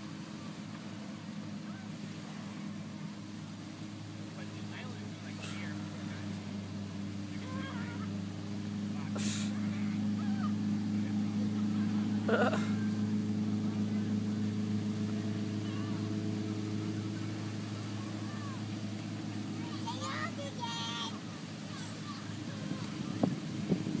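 Gulls call overhead.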